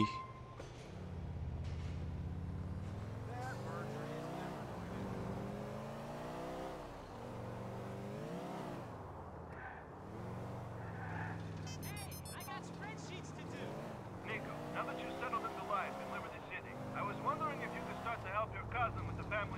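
A car engine revs up and down as it drives.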